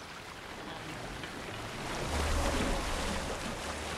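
Oars splash as a boat moves quickly through water.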